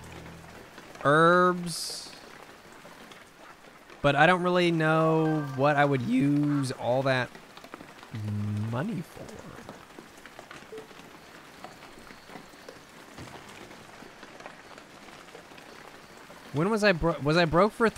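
A man talks with animation into a close microphone.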